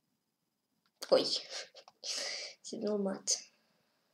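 A young boy speaks with animation, close to a microphone.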